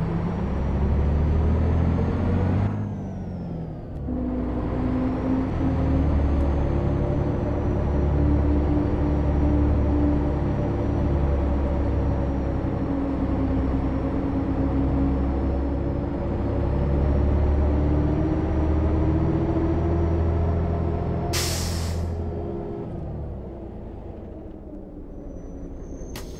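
A bus engine hums and whines steadily as it drives.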